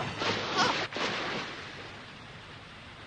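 Water rushes and roars loudly.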